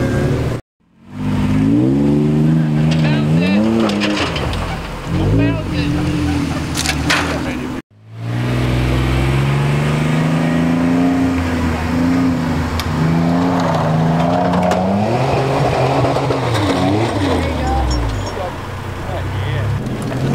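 A truck engine roars and revs hard as it climbs a steep dirt slope.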